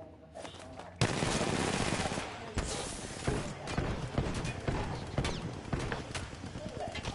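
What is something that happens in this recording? Gunfire rattles in rapid bursts, loud and close.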